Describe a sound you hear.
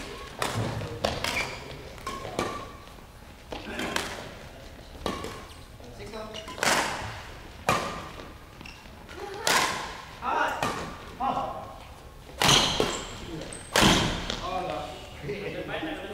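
Shuttlecocks are struck sharply by rackets in a large echoing hall.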